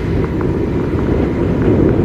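A car passes close by.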